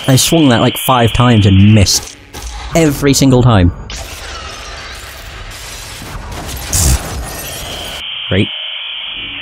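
Electronic static hisses.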